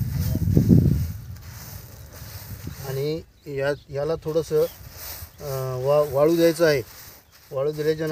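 Seeds rustle as a man mixes them by hand.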